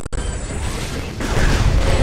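A video game energy blaster fires.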